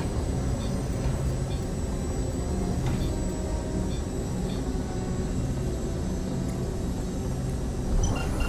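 A spaceship engine hums with a steady low rumble.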